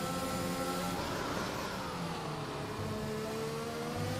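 A racing car engine drops in pitch as the car brakes and downshifts for a corner.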